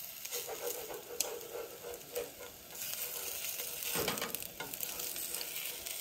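A metal spatula scrapes against a frying pan.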